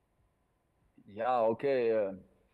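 A man speaks briefly over an online call, with drawn-out vowels.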